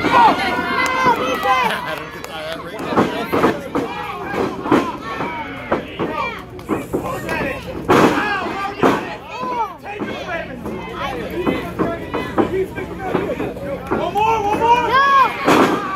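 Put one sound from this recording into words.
A crowd of spectators shouts and cheers outdoors.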